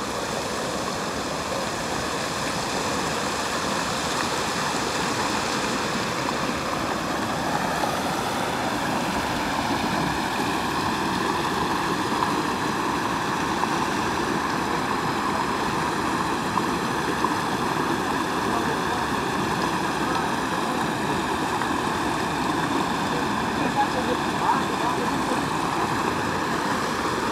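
Water rushes and churns steadily over a low bank, close by.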